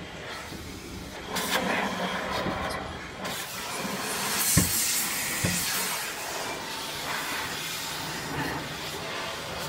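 Car wash brushes swish and thump on a car's body.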